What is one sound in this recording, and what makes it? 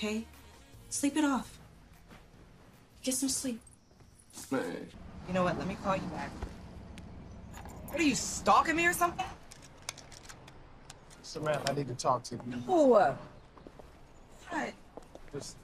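A young woman speaks urgently and close by.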